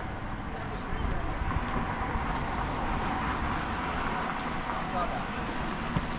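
A scooter motor hums as the scooter passes close by.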